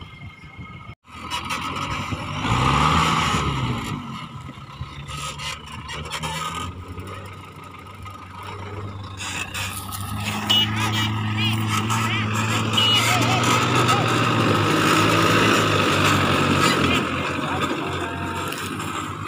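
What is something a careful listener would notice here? An off-road vehicle's engine growls and revs as it climbs a rough slope.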